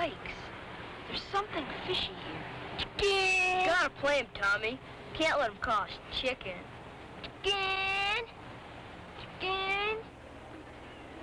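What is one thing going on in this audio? Boys talk with animation nearby.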